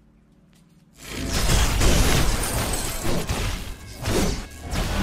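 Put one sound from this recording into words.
Magic blasts and crackling effects of a fight burst out loudly.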